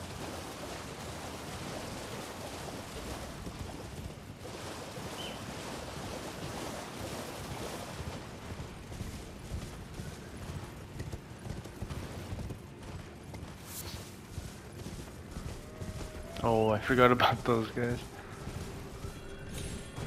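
Hooves gallop steadily.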